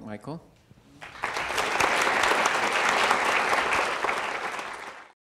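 A large audience applauds.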